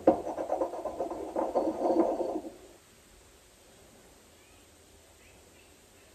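A spoon clinks against a small bowl.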